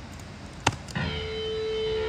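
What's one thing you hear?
An electric guitar plays a sustained note.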